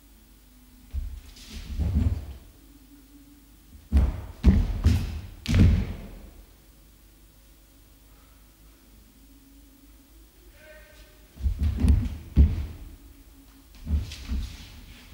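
Feet thud and shuffle on a wooden floor.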